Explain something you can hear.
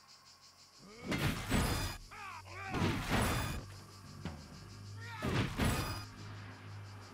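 Blades strike and slash in a fierce fight.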